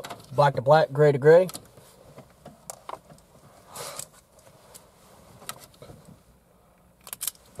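Plastic wiring connectors click and rattle close by.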